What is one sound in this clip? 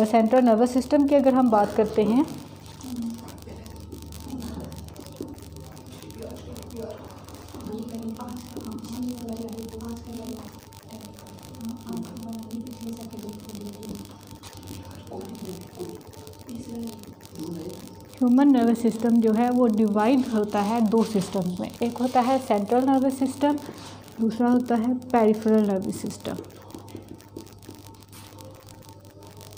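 A woman speaks calmly, as if teaching, close by.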